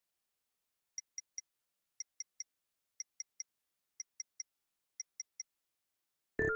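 A game's countdown timer beeps in quick triple beeps each second.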